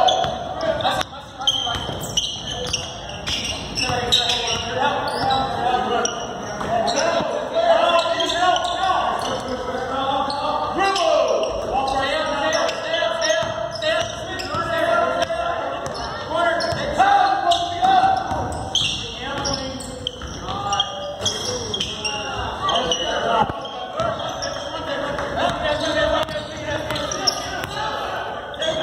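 Spectators and players call out and chatter in a large echoing hall.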